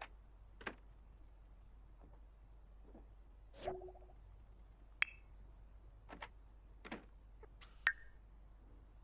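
Short soft clicks and chimes from a computer game sound now and then.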